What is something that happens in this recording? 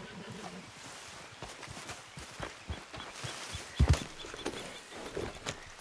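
Horse hooves trot on soft ground.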